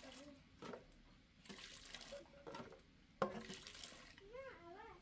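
A metal lid clatters against a metal pot.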